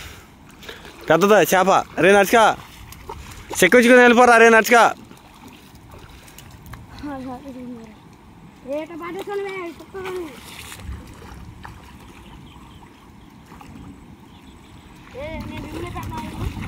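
A man splashes through shallow water.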